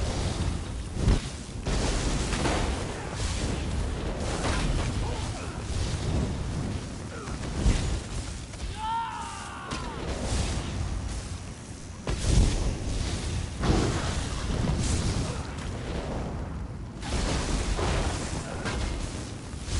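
Magic blasts crackle and boom.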